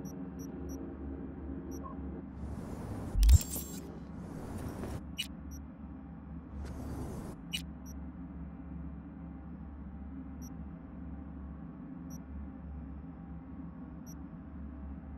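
Soft electronic menu clicks sound now and then.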